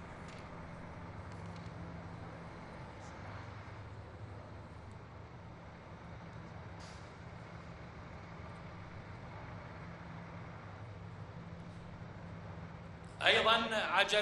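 Heavy truck engines rumble steadily as the trucks roll slowly forward.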